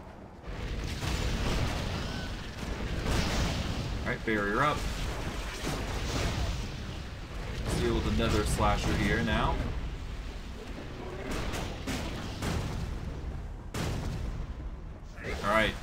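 Low rumbling combat sounds roll on steadily.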